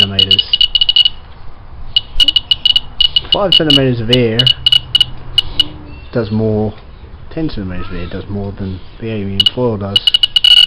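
An electronic device beeps in quick bursts.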